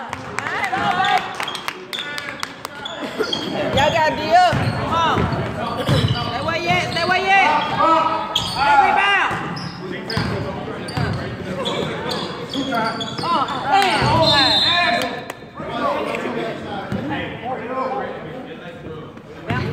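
Sneakers squeak on a hard court in a large echoing gym.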